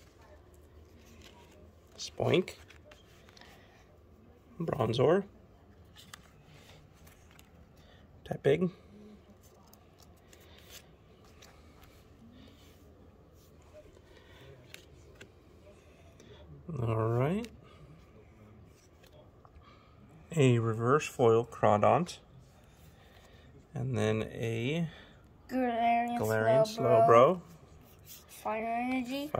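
Stiff cards rustle and tap softly as a hand handles them.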